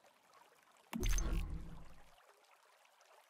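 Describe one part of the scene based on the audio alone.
A deep whooshing boom sounds as a game menu opens.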